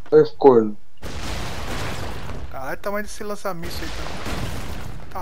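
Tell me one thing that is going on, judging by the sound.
An explosion booms and debris scatters.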